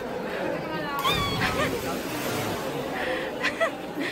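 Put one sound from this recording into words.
A child splashes into water.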